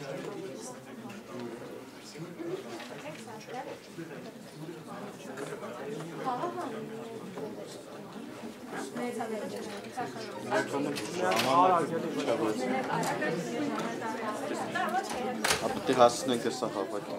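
Several people chatter quietly in a room.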